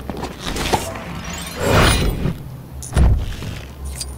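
A toy figure lands with heavy thuds.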